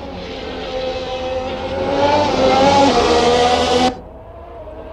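A racing car engine screams at high revs as the car passes close by.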